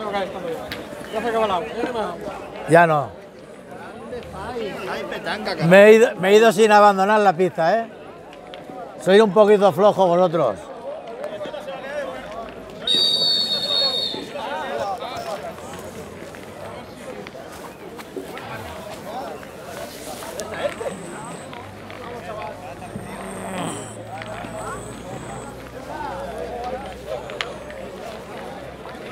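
Several men chat in the background outdoors.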